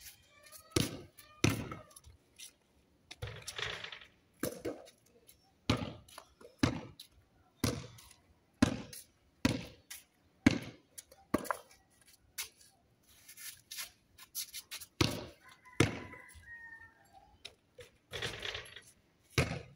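A basketball bounces repeatedly on concrete outdoors.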